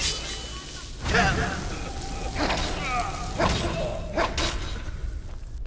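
Fire roars and crackles in bursts.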